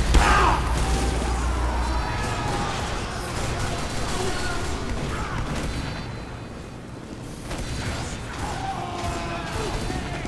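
Footsteps tap along a hard floor.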